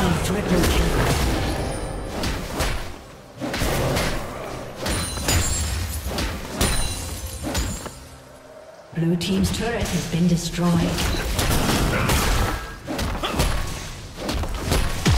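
Fantasy battle effects crackle, whoosh and burst in quick succession.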